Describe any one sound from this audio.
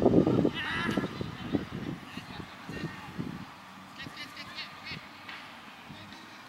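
Young players shout to each other in the distance outdoors.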